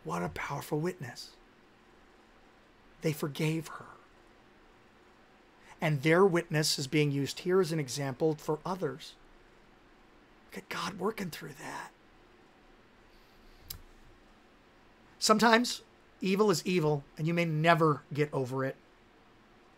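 A man speaks calmly and expressively into a close microphone, with pauses.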